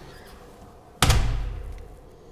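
A door knocks against its frame with a thud.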